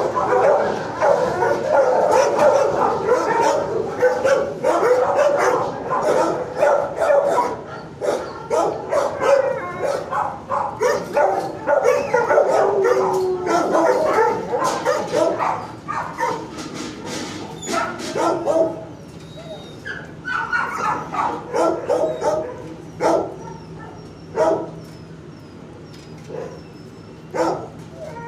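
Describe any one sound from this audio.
A dog sniffs loudly.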